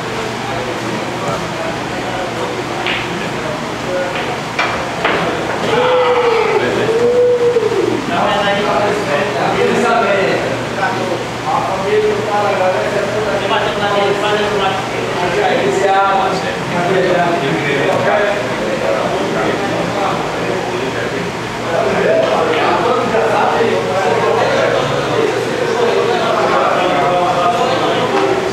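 Men talk casually nearby in a room with a slight echo.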